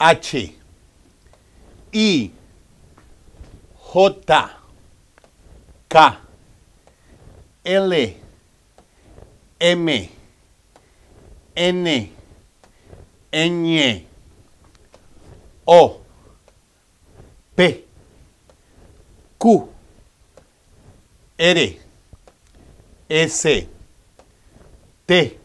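A middle-aged man speaks clearly and slowly in short bursts, close by, pausing between each one.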